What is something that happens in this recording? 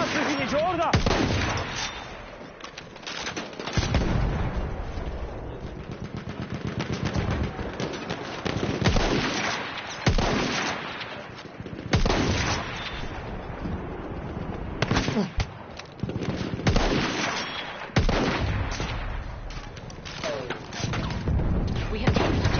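Explosions boom and rumble in the distance.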